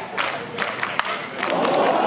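A metal bat cracks sharply against a baseball.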